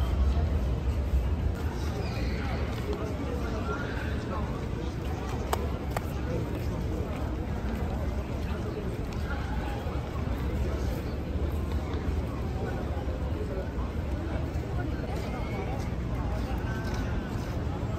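Voices of a crowd of men murmur and chat nearby outdoors.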